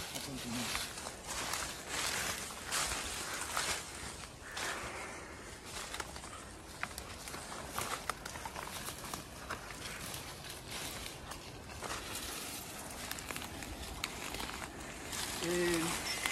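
Plants rustle as a person brushes past them.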